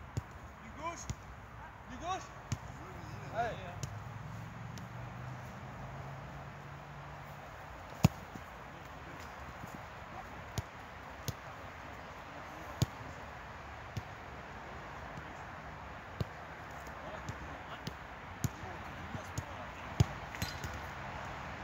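A football is kicked with sharp thuds, again and again.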